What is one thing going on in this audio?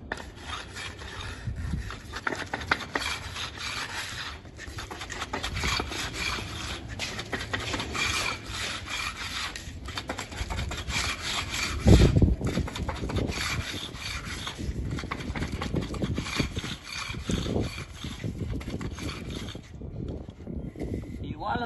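A hand trowel scrapes and swishes across wet concrete.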